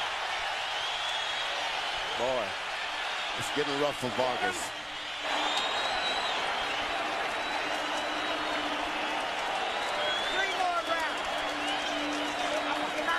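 A large crowd cheers and roars loudly in a big arena.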